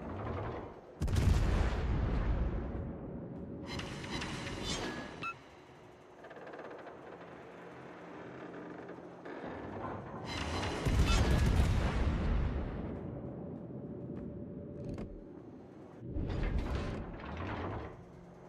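Heavy naval guns boom in salvos, with rumbling echoes.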